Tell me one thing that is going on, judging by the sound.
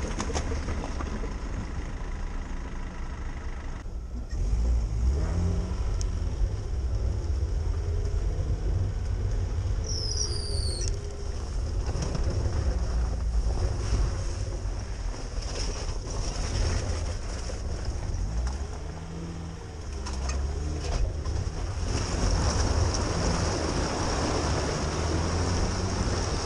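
A car engine rumbles and revs as the vehicle crawls over rough ground.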